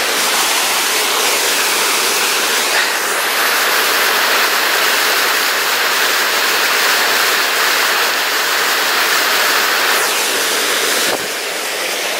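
A small waterfall splashes and roars steadily into a stream.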